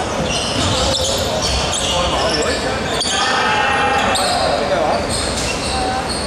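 Basketball sneakers squeak on a hardwood court in a large echoing hall.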